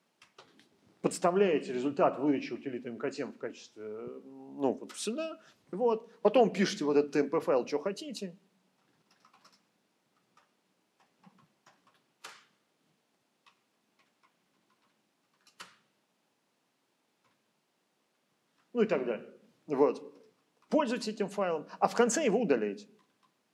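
A man speaks calmly into a microphone, heard as if through an online call.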